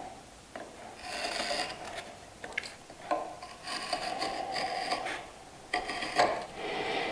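A sharp point scratches and scrapes across wood.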